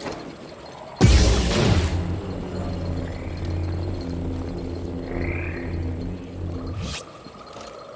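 A lightsaber ignites with a loud burst and hums steadily.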